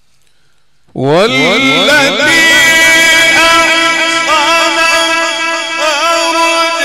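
A man chants loudly through a microphone, with a long, drawn-out melodic voice.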